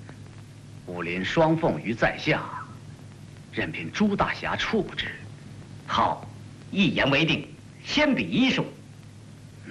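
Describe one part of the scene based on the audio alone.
A man answers with animation, close by.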